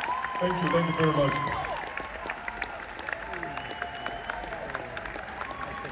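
An audience claps.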